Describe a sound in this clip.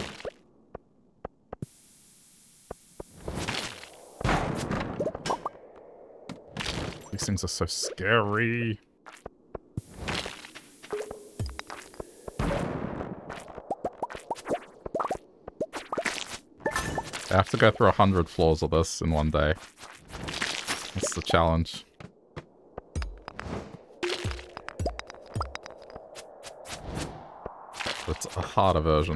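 A pickaxe smashes rocks with sharp cracks.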